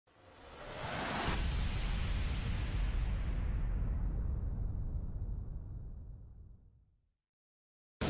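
A deep fiery roar swells up and slowly fades away.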